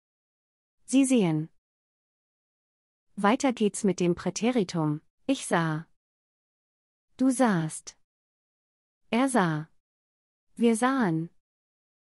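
A woman reads out short words clearly, pausing between them, close to a microphone.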